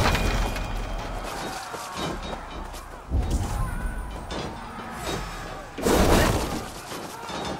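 Weapons clash and thud in a battle.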